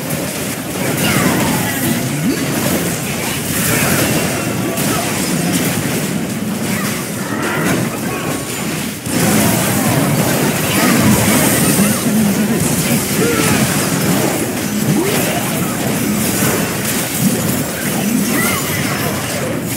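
Spells and attacks crackle and boom in a fast game battle.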